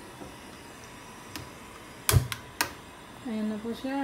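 A gas burner clicks and ignites.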